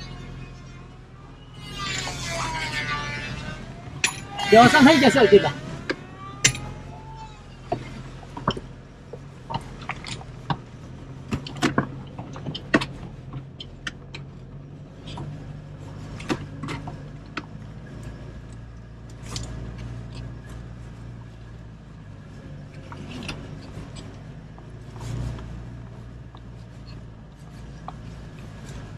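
A car engine rumbles low while driving slowly.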